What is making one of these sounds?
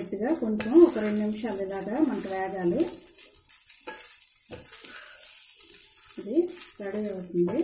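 A spoon scrapes and stirs rice in a metal pot.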